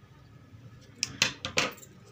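Scissors snip sharply a few times.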